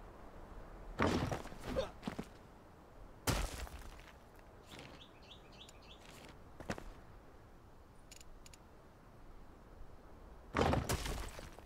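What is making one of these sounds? Stone blocks thump heavily into place.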